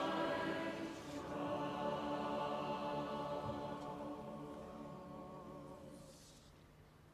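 A large congregation sings together in a reverberant space.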